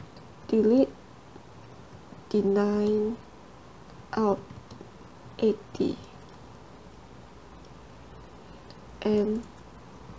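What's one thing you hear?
A young woman speaks calmly into a close microphone, in short phrases with pauses.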